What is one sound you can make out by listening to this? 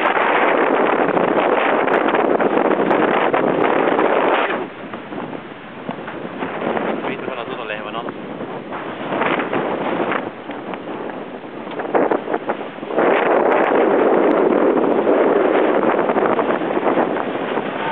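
Strong wind buffets the microphone outdoors in loud gusts.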